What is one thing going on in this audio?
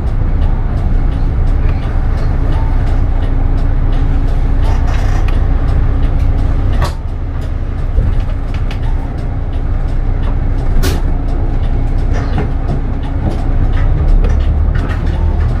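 A bus engine hums low and steady from inside the bus.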